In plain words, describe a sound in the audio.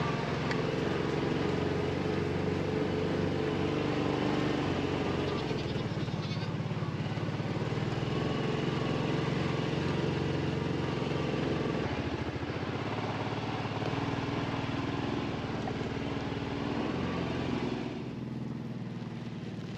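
A herd of goats trots through dry grass.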